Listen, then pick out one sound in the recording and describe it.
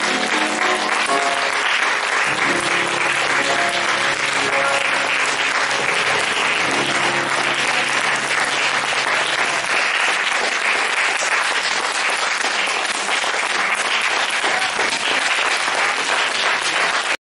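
An audience claps and applauds loudly in a hall.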